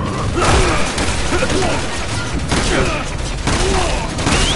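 Rapid gunfire bursts close by.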